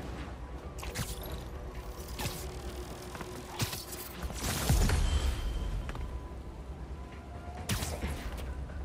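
Sharp snapping thwips ring out several times.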